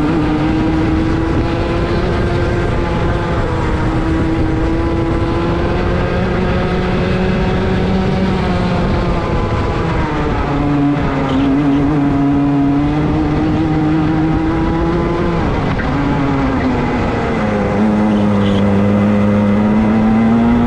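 A kart engine whines loudly up close, its pitch rising and falling with speed.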